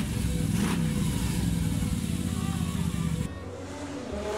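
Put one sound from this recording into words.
A motorcycle engine runs loudly with a rapid throbbing rumble.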